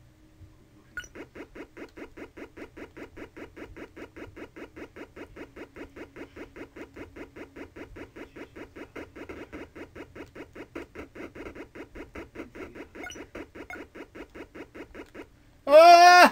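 Rapid electronic blips tick steadily as a game character walks.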